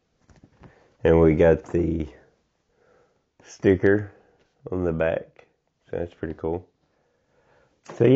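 A man speaks calmly and close by, in short phrases.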